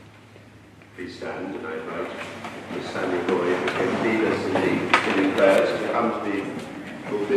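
Several people murmur and shuffle about nearby.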